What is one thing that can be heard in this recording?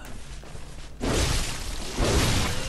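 A blade slashes with a loud whooshing rush.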